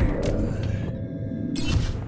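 Gunshots crackle in a video game battle.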